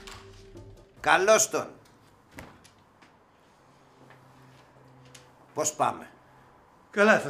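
A middle-aged man speaks loudly with animation nearby.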